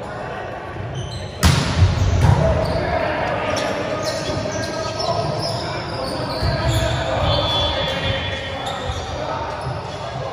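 A crowd of young people chatter and call out in a large echoing hall.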